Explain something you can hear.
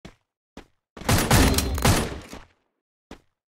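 Gunfire bursts in a rapid loud volley.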